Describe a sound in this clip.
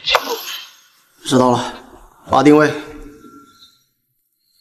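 A young man speaks into a phone, calmly and close.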